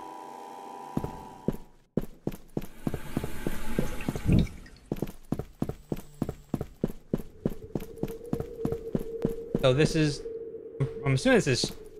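Footsteps tap quickly on a hard floor in an echoing space.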